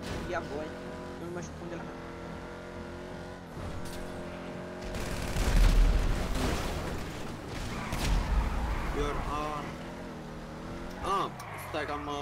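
A sports car engine roars at high revs.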